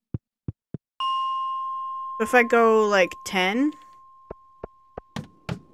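A short chiming tone plays and rings on steadily.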